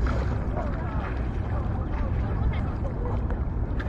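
Water splashes around a swimmer.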